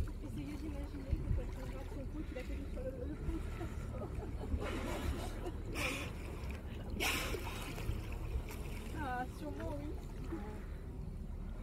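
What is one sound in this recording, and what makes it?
Dolphins whistle with high, squeaky rising and falling calls.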